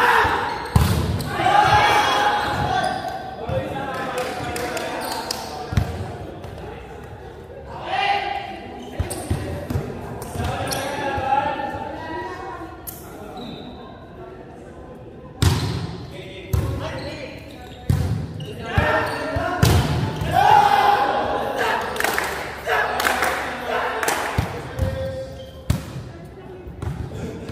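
Young men shout and call out to each other across the echoing hall.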